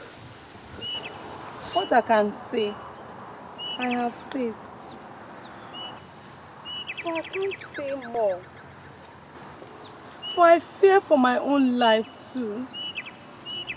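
A young woman speaks with emotion close by.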